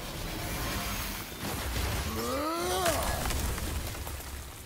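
Glassy shards crack and crash apart.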